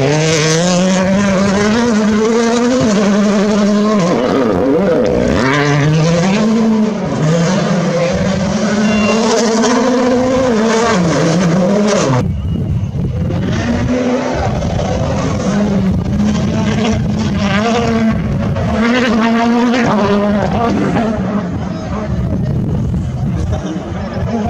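Rally car engines roar loudly and rev up and down as the cars speed past.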